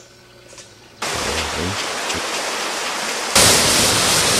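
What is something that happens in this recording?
A stream gurgles over rocks.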